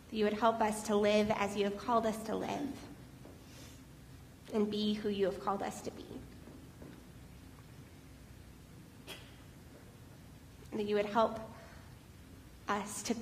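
A woman speaks into a microphone in a large echoing hall, in short phrases with pauses.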